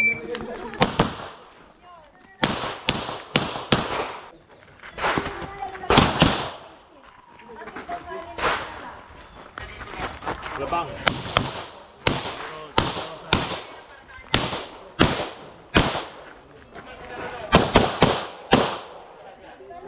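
Gunshots crack rapidly outdoors, one after another.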